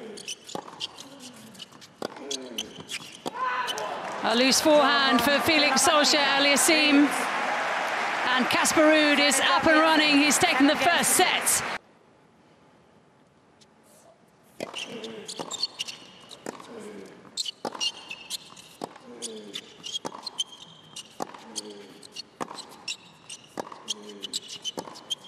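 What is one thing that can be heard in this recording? Tennis rackets strike a ball back and forth.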